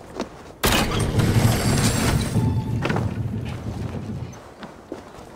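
Someone lands with a heavy thud on wooden boards.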